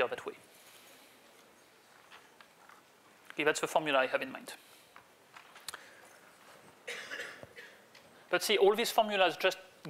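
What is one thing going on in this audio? A man speaks calmly, lecturing into a microphone.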